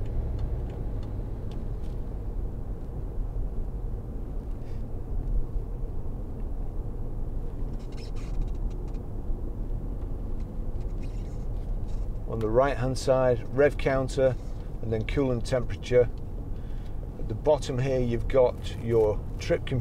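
A car engine hums with a low road rumble while driving steadily.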